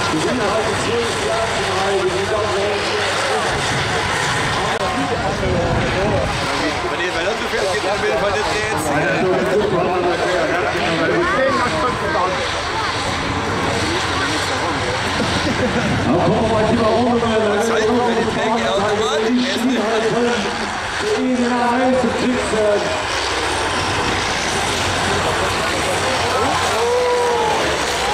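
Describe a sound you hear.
Diesel engines of racing combine harvesters roar and rev.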